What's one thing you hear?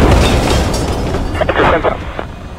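A large explosion booms and rumbles away.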